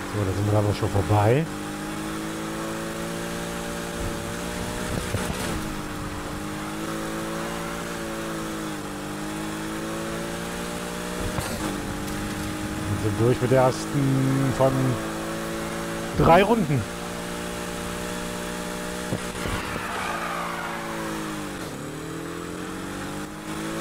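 A race car engine roars steadily at high revs, rising and falling as it shifts gears.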